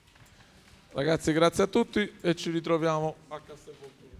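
A man speaks loudly in an echoing hall.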